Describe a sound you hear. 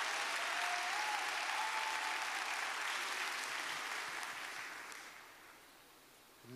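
A large crowd applauds in an echoing hall.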